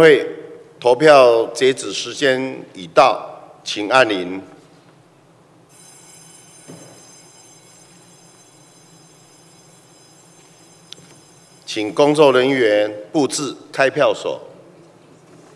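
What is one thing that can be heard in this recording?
A middle-aged man reads out through a microphone in a large echoing hall.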